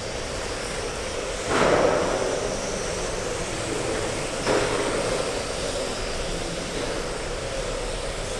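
Small electric model cars whine as they race around a track in a large echoing hall.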